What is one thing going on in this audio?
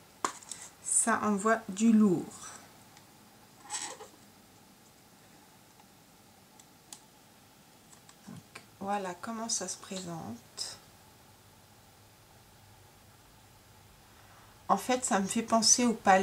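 A woman speaks calmly and close to a microphone, pausing between phrases.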